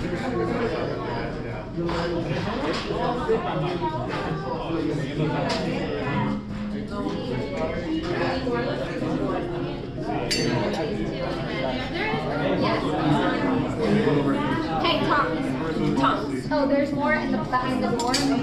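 A crowd of adults and children chatter throughout in a large echoing room.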